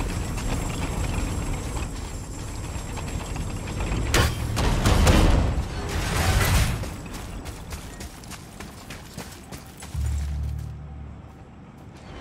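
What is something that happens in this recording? Heavy armored footsteps thud steadily on the ground.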